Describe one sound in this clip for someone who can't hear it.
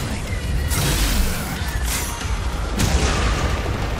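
Sword slashes clash and crash in a fight.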